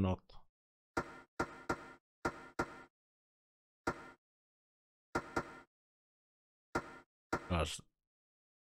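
Short electronic menu blips sound at intervals.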